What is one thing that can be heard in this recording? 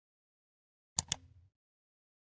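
A computer mouse clicks twice.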